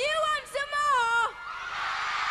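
A young woman sings into a microphone over loudspeakers.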